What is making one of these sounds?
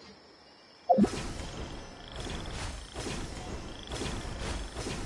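Wind rushes past while gliding through the air.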